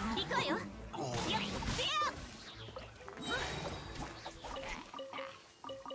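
Game combat effects crash and whoosh with bursts of magic.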